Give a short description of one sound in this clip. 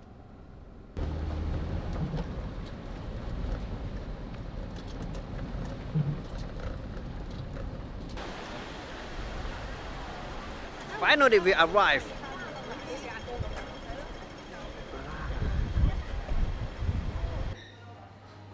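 Rain and traffic noise fill a wet city street.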